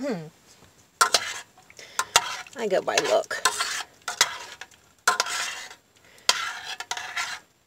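A metal spoon stirs and scrapes against a metal pot.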